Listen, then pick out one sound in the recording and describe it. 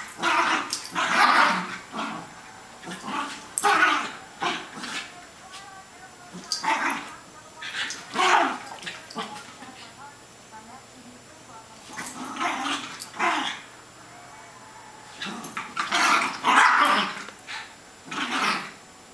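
Two small dogs growl and yap playfully, close by.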